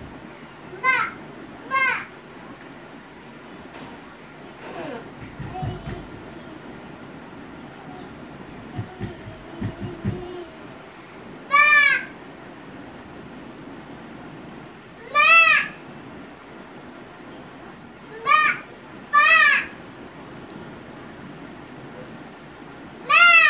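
A toddler squeals loudly in short, high bursts close by.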